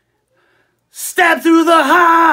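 A middle-aged man sings loudly into a microphone.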